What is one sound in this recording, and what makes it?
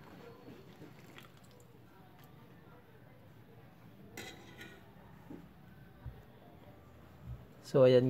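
A ladle stirs and scoops broth in a pot with soft liquid sloshing.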